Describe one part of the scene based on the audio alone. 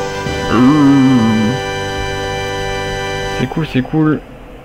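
Video game music plays with a melodic tune.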